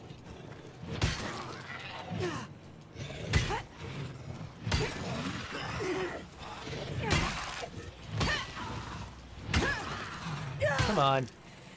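Heavy blows thud and crack in a fight.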